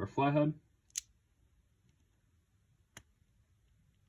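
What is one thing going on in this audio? A metal multitool clicks as its parts are opened and folded.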